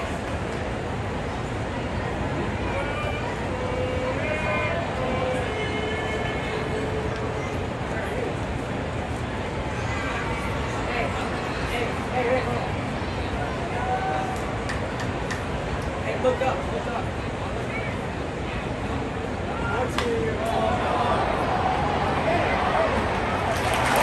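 A large stadium crowd murmurs and chatters all around.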